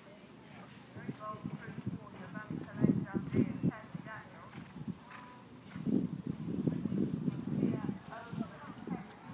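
A horse's hooves thud on grass as it canters past.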